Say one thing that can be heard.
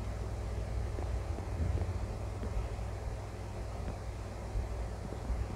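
Wooden blocks are chopped with soft, repeated knocks.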